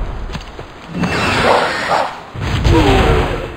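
A fiery blast whooshes and rumbles.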